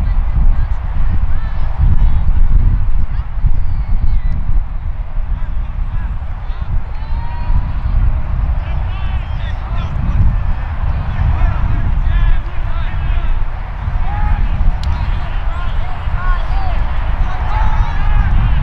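Young men shout and call out to each other across a field.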